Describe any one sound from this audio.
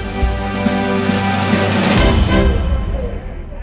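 A fire engine's siren blares close by.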